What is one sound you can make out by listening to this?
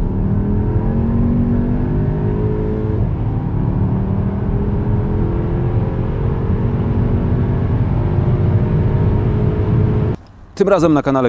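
A car engine hums steadily as the car speeds up inside.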